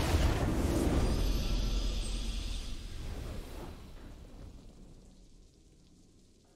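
A triumphant game victory fanfare swells and then fades away.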